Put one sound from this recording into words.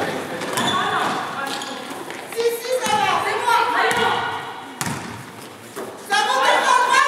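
A crowd of players and spectators shouts and calls out in a large echoing gym.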